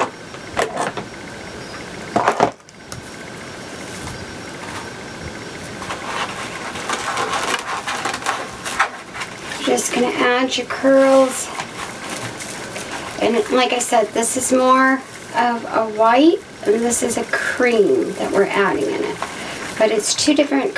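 Plastic mesh ribbon rustles and crinkles as hands handle it.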